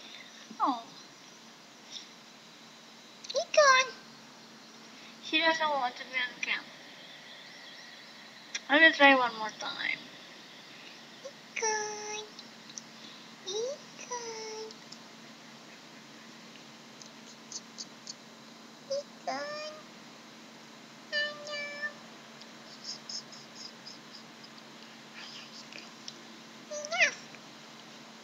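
A young woman talks playfully and laughs close to a microphone.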